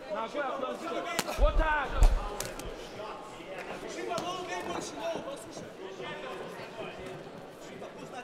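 A crowd shouts and cheers.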